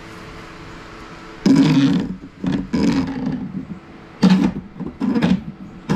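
Metal conduit rattles and scrapes as it is handled.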